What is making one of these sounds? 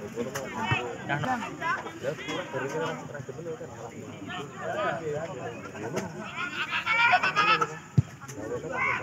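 Young men shout and call out across an open outdoor field.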